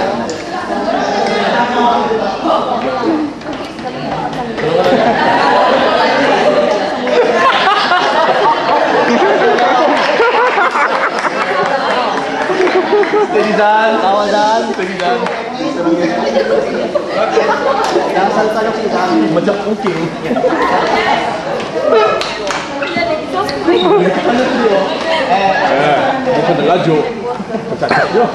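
A crowd of children and adults chatters and cheers loudly.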